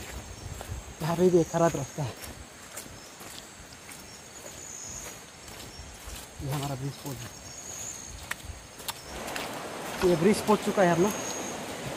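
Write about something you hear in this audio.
A young man talks close by, in short bursts, outdoors.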